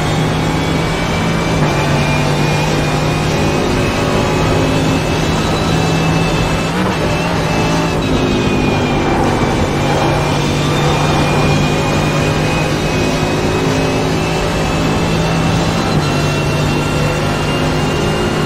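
A racing car engine roars at high revs, shifting gears as it speeds up.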